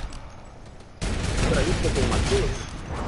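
Rapid gunfire rattles from a weapon up close.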